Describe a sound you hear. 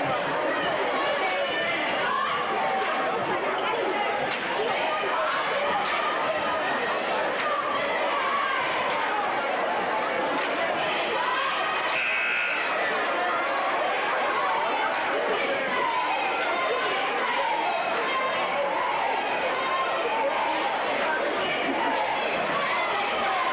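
A crowd of spectators chatters loudly in an echoing gym.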